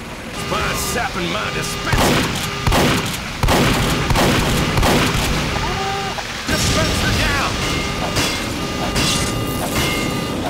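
A shotgun fires in loud, sharp blasts.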